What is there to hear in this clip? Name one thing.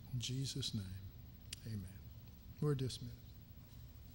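An older man speaks calmly into a microphone in short phrases.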